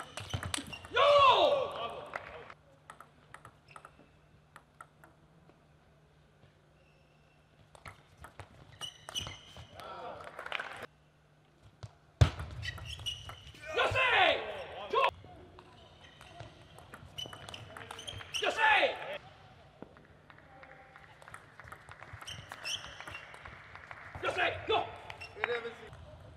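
A young man shouts loudly in short bursts.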